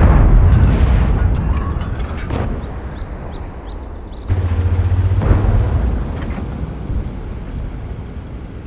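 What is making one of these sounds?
A heavy tank engine rumbles steadily.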